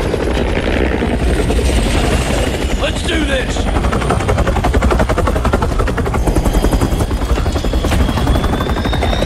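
A helicopter's rotor thumps rapidly nearby.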